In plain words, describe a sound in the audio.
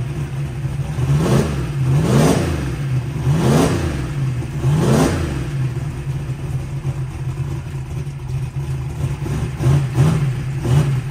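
A big engine revs up sharply in short bursts and drops back.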